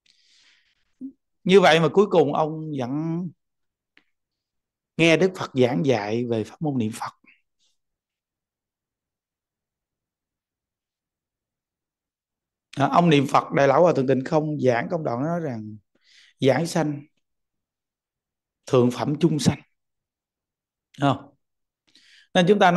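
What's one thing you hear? A middle-aged man speaks calmly and close to a microphone, in short phrases with long pauses.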